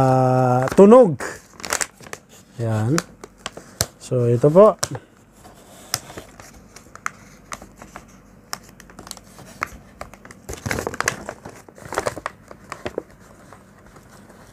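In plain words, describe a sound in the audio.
Paper crinkles and tears as it is handled.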